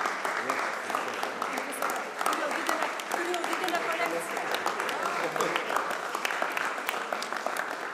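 A crowd of people claps.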